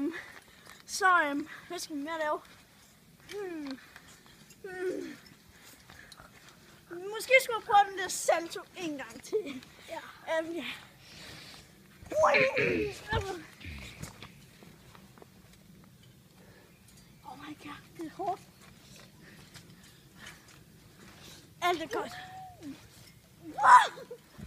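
A trampoline mat creaks and thumps under bouncing feet.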